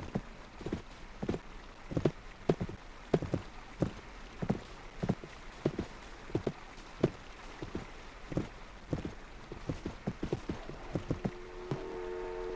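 A horse's hooves clop steadily on dirt.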